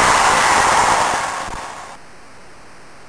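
A crowd cheers loudly and quickly fades.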